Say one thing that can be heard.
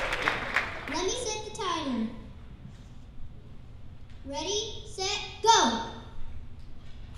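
A boy speaks into a microphone in a large echoing hall.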